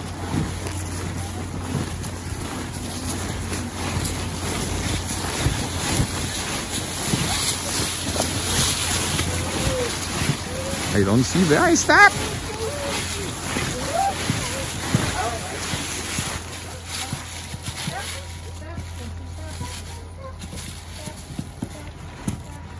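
Dry leaves rustle and crunch underfoot as people walk.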